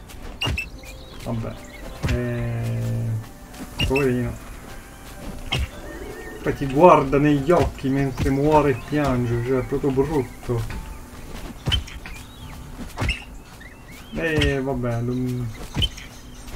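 An axe strikes a creature with dull thuds.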